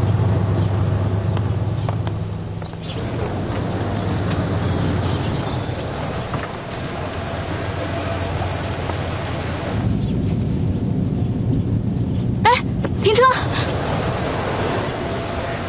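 A car engine hums steadily as a car drives slowly.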